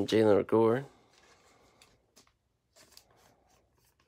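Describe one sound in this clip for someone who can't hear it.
A plastic sleeve crinkles as a card slides out of it.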